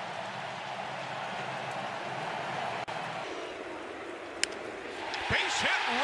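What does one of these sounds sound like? A crowd murmurs in a large stadium.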